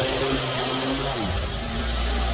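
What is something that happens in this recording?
A lawn mower engine cuts out.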